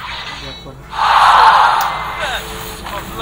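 A magical projectile whooshes and bursts.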